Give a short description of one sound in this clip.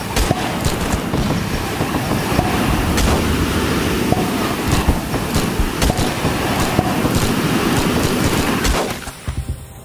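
A flamethrower roars steadily, then cuts off.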